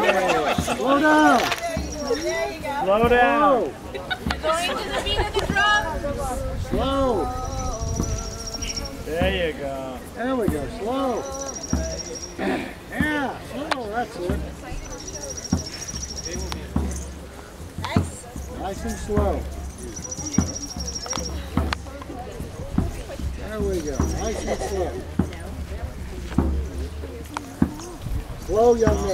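A crowd of men, women and children chat and call out nearby outdoors.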